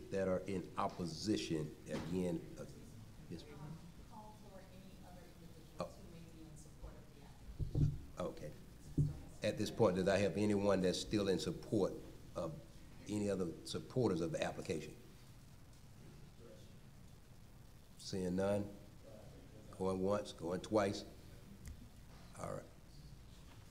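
A middle-aged man speaks calmly into a microphone, with pauses.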